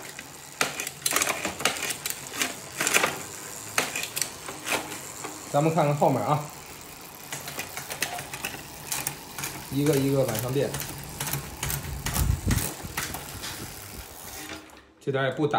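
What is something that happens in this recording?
A bicycle freewheel ticks as the pedals spin.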